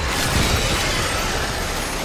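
A monster snarls and shrieks up close.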